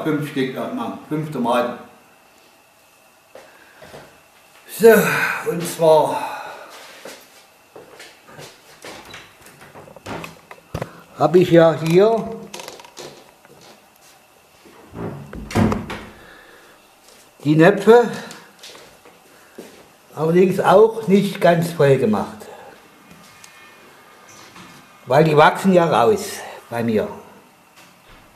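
An elderly man talks calmly, close by, in short phrases.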